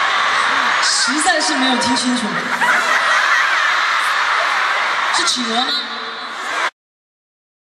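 A young woman talks into a microphone, heard over loudspeakers in a large hall.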